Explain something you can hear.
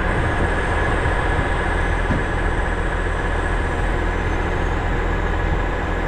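A diesel truck engine idles steadily nearby.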